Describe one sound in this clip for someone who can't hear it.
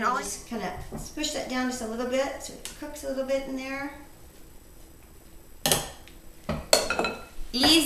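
A spoon scrapes and stirs food in a pan.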